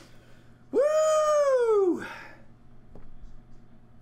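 A small plastic game piece taps down on a mat.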